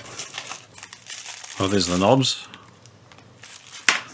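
Plastic wrapping crinkles as it is unwrapped by hand.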